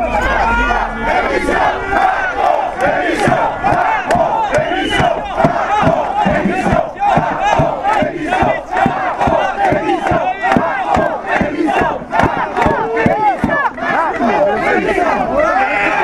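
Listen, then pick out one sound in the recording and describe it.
People in a crowd clap their hands in rhythm.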